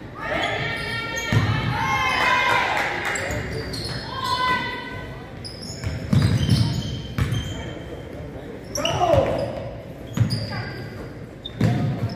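Young women call out to each other during play.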